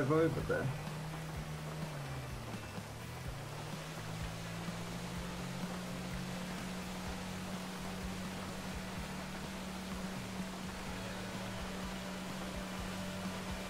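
A motorboat engine hums steadily.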